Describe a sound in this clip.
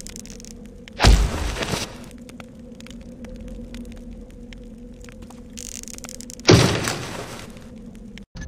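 A wooden crate lands with a heavy thud.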